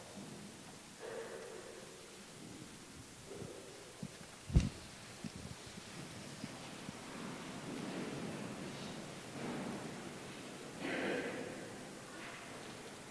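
A man speaks into a microphone, echoing through a large hall.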